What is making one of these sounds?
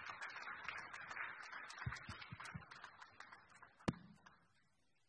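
An audience claps in a large hall and the applause fades away.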